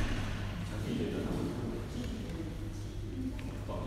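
Young adults talk nearby.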